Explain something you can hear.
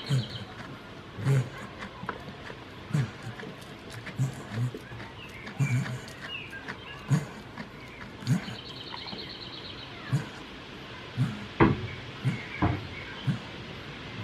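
A goat chews its cud close by, with soft, regular crunching thumps.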